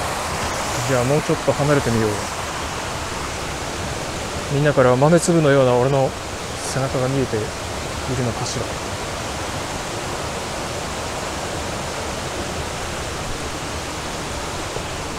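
A shallow stream trickles steadily over rocks.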